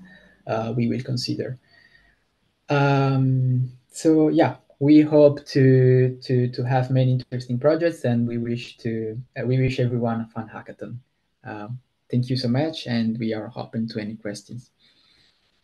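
A young man speaks calmly through a microphone on an online call.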